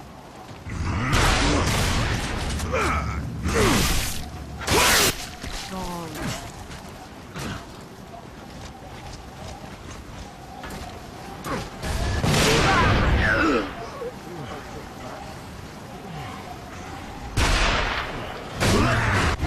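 Guns fire in loud, rapid bursts.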